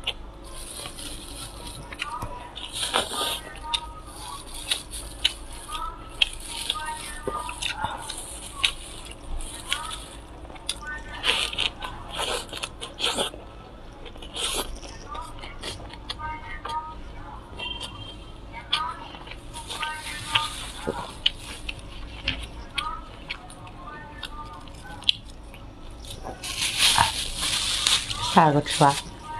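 A woman chews crunchy lettuce close to a microphone.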